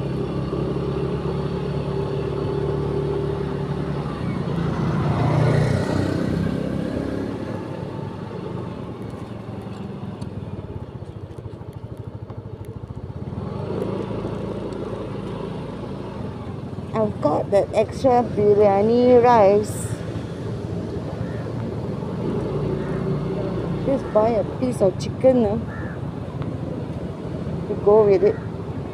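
A small motorcycle engine hums while riding along a street.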